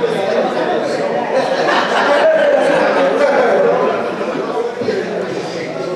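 Men laugh heartily.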